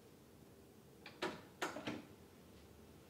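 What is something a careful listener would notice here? A tape deck's play button clicks and clunks down.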